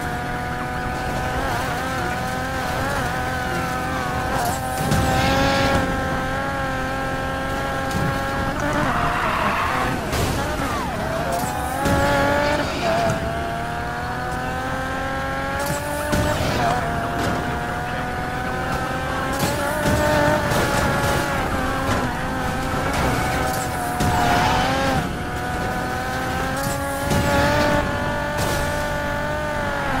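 A sports car engine roars and whines, rising and falling with gear changes.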